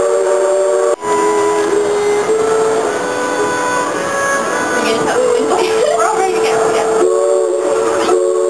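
A large bell rings out loudly.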